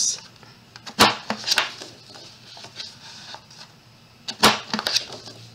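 A paper punch clicks sharply.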